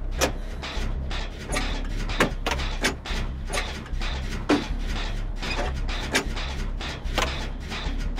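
Metal parts clank and rattle in quick, uneven knocks.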